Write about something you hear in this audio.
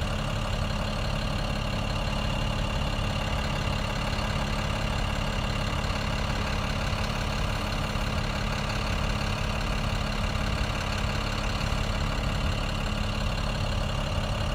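A vehicle engine idles steadily nearby.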